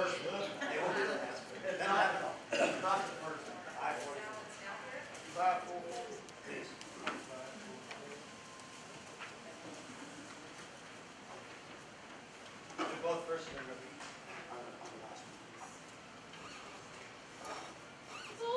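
An elderly man speaks to a group in an echoing room.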